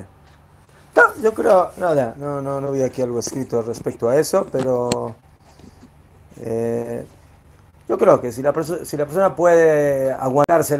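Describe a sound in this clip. An elderly man speaks calmly and with animation, close by.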